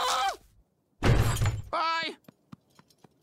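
Heavy wooden gates creak and swing open.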